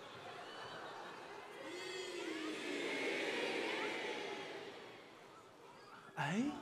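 An audience laughs and applauds.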